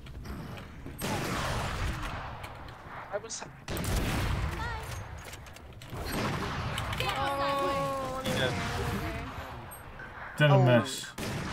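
A sniper rifle fires with a loud crack.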